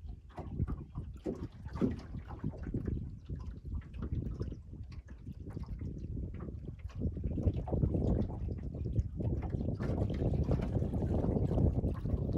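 Small waves lap against a boat's hull.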